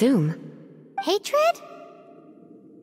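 A girl speaks briefly in a high voice.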